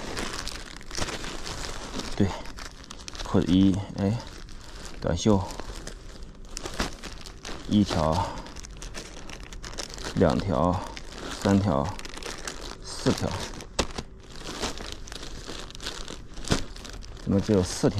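Plastic packaging rustles and crinkles as hands handle it.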